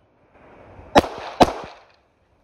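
Gunshots crack sharply outdoors, one after another.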